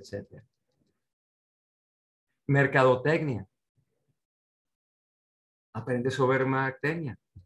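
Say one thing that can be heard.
A middle-aged man speaks calmly through an online call microphone, in short phrases with pauses.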